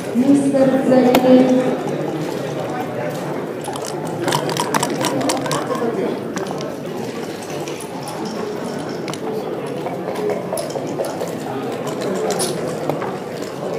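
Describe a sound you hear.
Game pieces click as they are moved on a wooden board.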